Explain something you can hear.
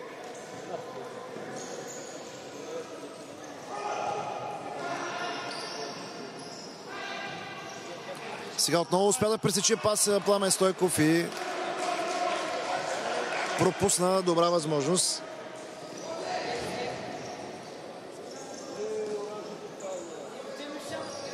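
A ball is kicked with dull thuds on an indoor court.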